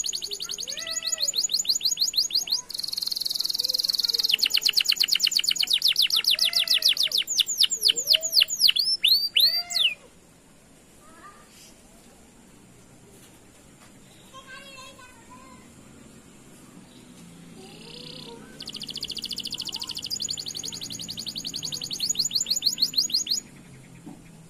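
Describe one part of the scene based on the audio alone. A canary sings loud, rapid trills and chirps close by.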